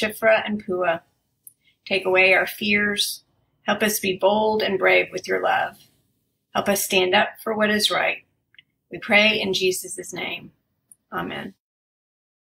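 An older woman speaks calmly and close to a microphone, as if reading out.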